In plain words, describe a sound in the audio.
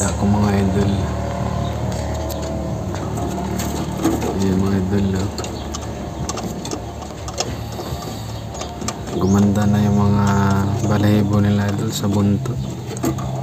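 Doves coo in low, soft, repeated calls close by.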